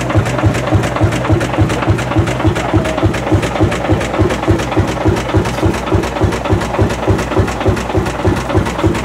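An old single-cylinder tractor engine idles close by with a slow, steady thumping chug.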